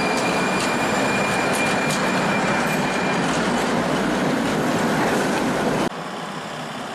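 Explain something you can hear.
Cars drive past on a road.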